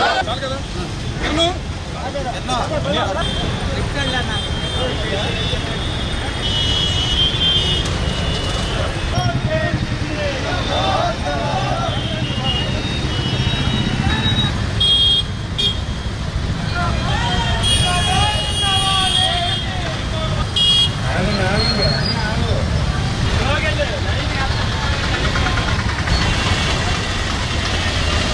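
A crowd chants slogans loudly outdoors.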